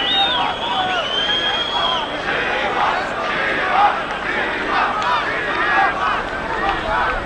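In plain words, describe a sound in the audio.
A large crowd murmurs and calls out outdoors.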